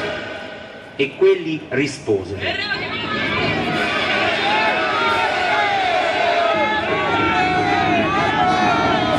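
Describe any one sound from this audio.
A man speaks loudly and theatrically.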